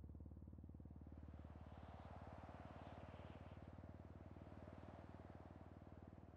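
A loud rushing burst of gas hisses and roars.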